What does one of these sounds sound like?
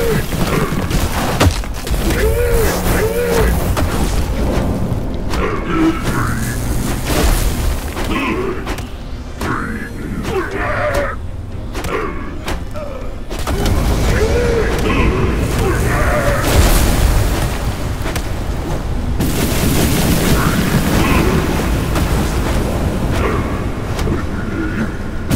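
Heavy weapon blows thud and clash.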